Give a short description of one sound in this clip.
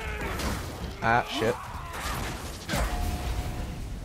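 Flames burst and roar.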